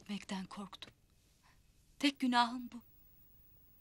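A woman speaks close by in an urgent, emotional voice.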